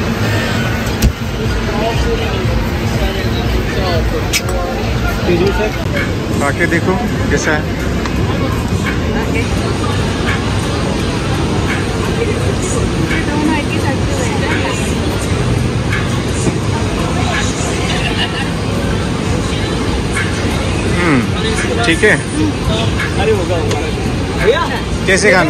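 A busy crowd murmurs all around.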